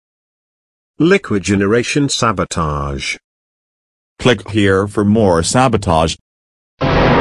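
A man's computer-generated voice shouts angrily through a loudspeaker.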